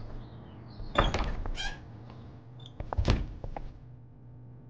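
A metal door handle rattles and clicks.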